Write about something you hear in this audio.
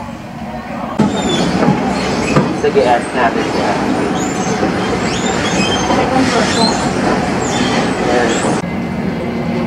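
An escalator hums and rattles as it moves.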